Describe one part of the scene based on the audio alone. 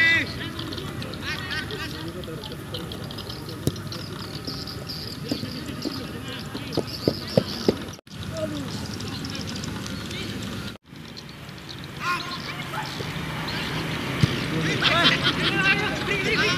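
A football is kicked with dull thumps outdoors.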